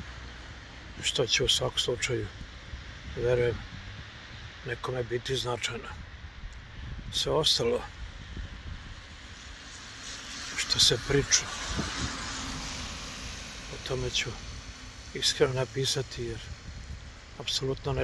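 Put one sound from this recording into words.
An elderly man talks calmly close to the microphone.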